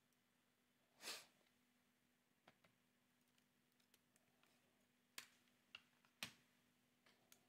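A device is handled with a few soft clicks and knocks.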